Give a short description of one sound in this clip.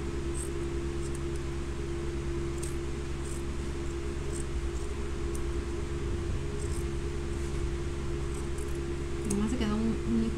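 Scissors snip through cloth.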